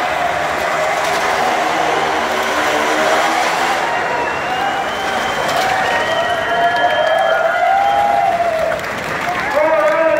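A motorcycle engine roars as the bike circles a steep wooden wall, echoing inside the drum.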